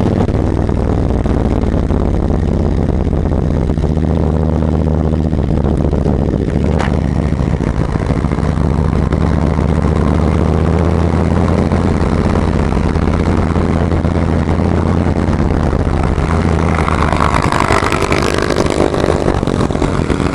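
A Harley-Davidson V-twin touring motorcycle rumbles as it cruises at low speed.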